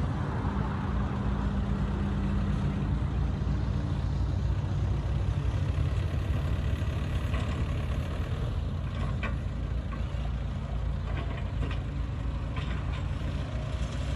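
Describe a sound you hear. Metal tracks of a bulldozer clank and squeak as it pushes dirt.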